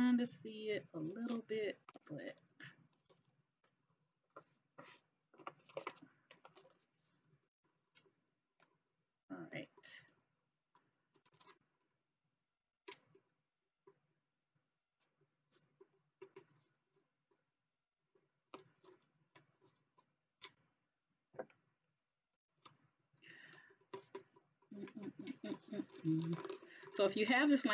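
Paper rustles as a sheet is rolled and folded.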